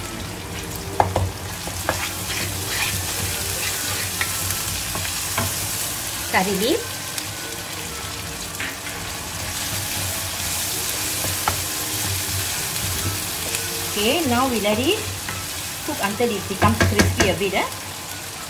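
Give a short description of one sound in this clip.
A wooden spatula scrapes and knocks against a pan.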